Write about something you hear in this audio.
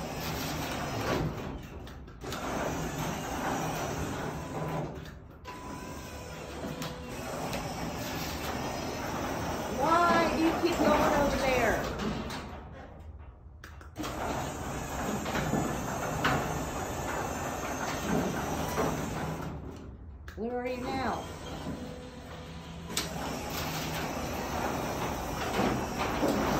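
A garage door opener motor hums and its chain rattles as the door rolls up.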